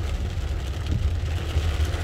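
A windshield wiper sweeps across the glass.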